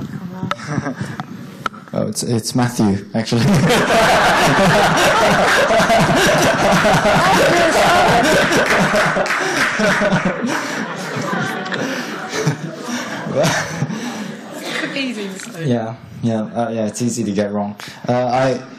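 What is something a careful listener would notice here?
A young woman speaks cheerfully through a microphone.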